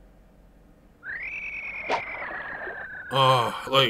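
A fishing line whizzes out on a cast.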